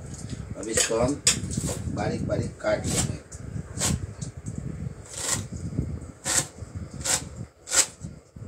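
A knife chops herbs on a cutting board with quick, regular knocks.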